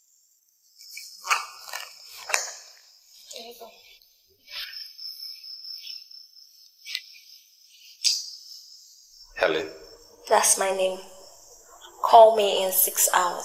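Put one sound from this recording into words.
A young woman speaks nearby, sounding annoyed.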